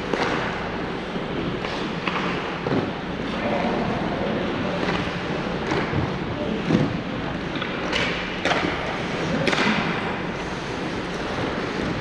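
Hockey sticks and pucks clack sharply against the ice and boards.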